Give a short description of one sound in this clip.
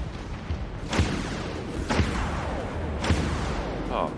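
A heavy gun fires single loud shots.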